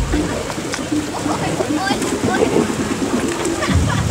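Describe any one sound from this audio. Water splashes as a girl moves through a pool.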